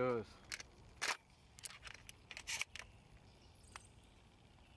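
Metal clicks and clacks as a shotgun is loaded.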